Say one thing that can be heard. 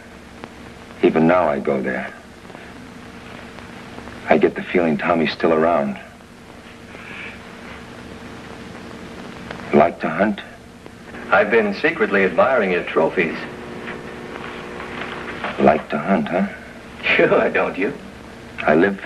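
A young man answers in a quiet, serious voice nearby.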